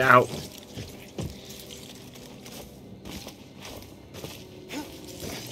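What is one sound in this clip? Footsteps thud on the ground.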